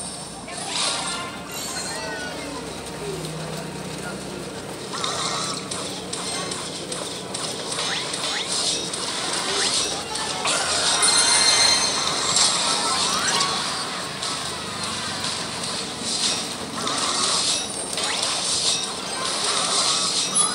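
Sound effects of a mobile strategy game's battle clash and clang.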